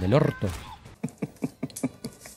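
An elderly man chuckles.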